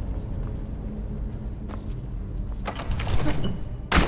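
Heavy wooden doors creak open.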